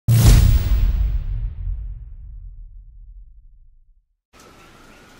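A deep booming hit rings out and slowly fades away.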